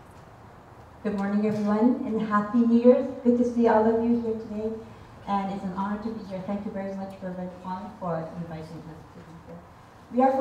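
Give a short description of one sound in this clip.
A young woman sings into a microphone.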